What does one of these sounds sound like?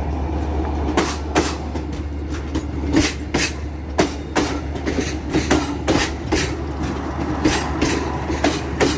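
Train wheels clack sharply over rail joints.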